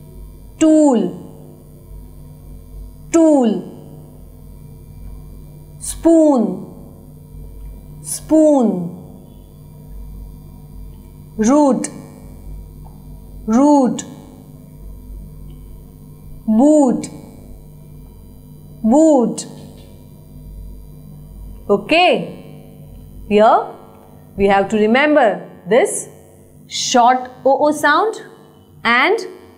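A young woman reads out single words one at a time, close to a microphone, with pauses between them.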